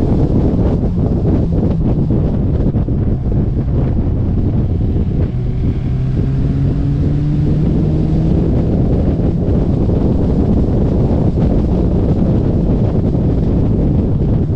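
Wind rushes loudly past an open car.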